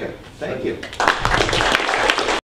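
People in a room applaud.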